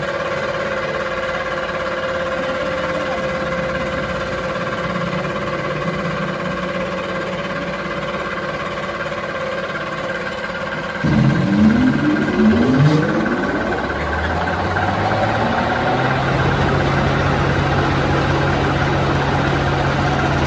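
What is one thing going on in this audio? An industrial machine hums steadily.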